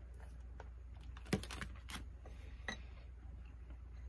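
A plastic lid clicks open.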